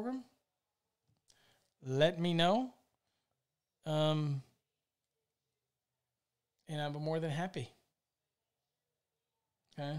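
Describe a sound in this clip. A middle-aged man speaks calmly and close into a microphone, in short bursts with pauses.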